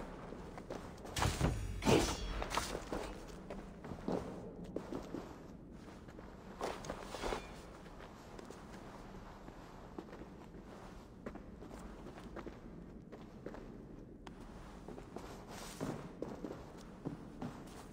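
A fire crackles softly nearby.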